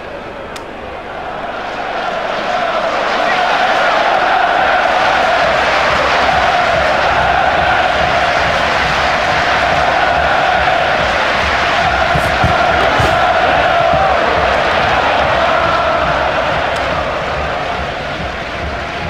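A large stadium crowd roars and cheers, swelling and then slowly fading.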